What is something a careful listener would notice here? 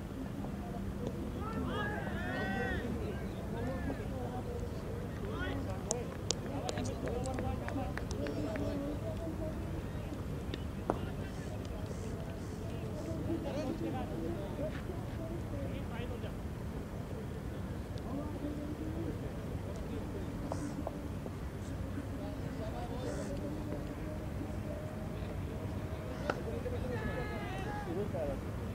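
Men call out to each other in the distance outdoors.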